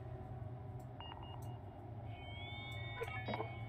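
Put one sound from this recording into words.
Short electronic chimes beep as items are added.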